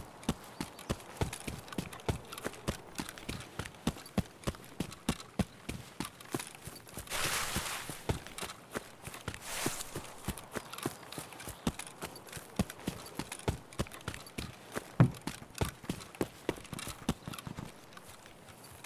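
Footsteps crunch quickly over ground and grass.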